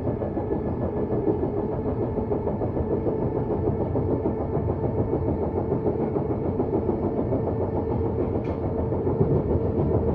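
A train car rumbles and rattles steadily along the tracks.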